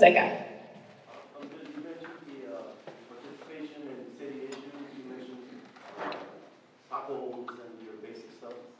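A woman speaks more quietly, farther from the microphone.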